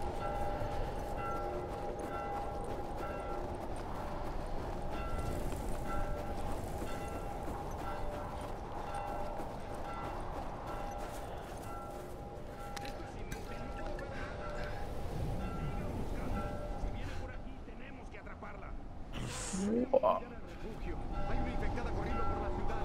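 Footsteps crunch through deep snow.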